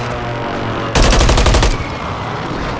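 An explosion booms loudly nearby.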